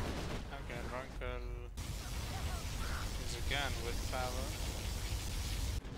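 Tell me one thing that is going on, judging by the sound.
A powerful energy beam roars and crackles.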